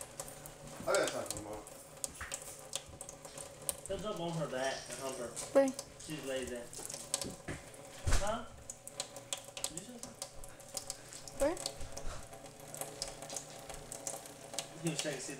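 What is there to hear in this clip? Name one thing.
Water trickles steadily from a tap into a metal sink.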